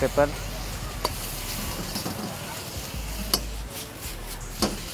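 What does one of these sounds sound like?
A metal ladle clanks against a wok.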